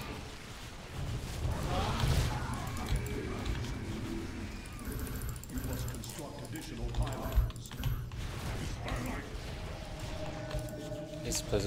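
Laser weapons zap and crackle in a busy battle.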